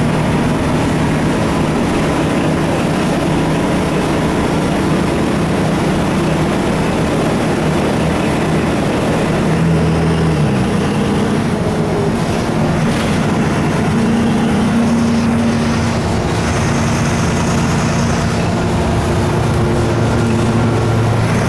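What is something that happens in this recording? A bus engine hums and drones steadily, shifting pitch as the bus changes speed.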